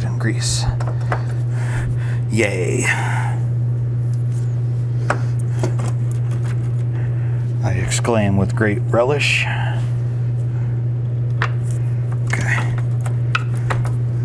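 A metal tool scrapes and clinks against a vehicle's underside.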